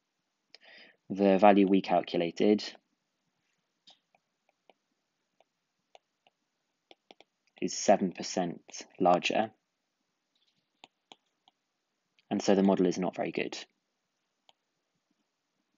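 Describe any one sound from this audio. A stylus taps and scrapes lightly on a tablet.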